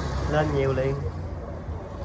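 Water bubbles and splashes in a tank.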